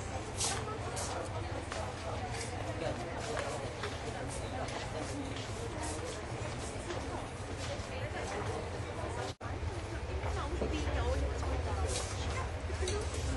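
A crowd of men and women chatter nearby in a room.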